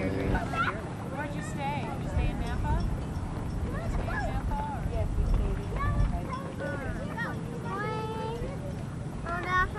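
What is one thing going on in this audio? Children shout and laugh outdoors by the water.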